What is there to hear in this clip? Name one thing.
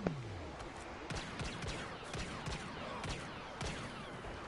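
Blaster rifle shots fire in quick bursts.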